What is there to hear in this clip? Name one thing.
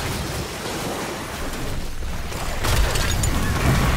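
Fantasy battle sound effects clash and blast in a game fight.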